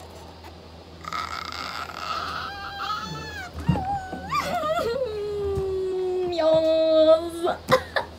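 A young woman laughs and squeals with delight.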